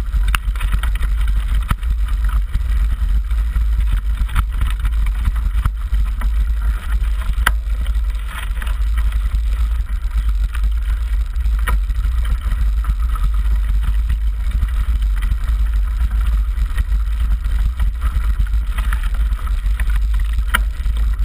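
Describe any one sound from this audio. Strong wind rumbles loudly across a microphone outdoors.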